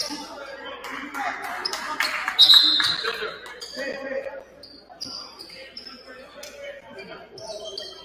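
A basketball bounces on a hard court, echoing in a large hall.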